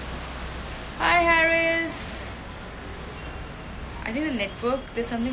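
A young woman speaks cheerfully and close by.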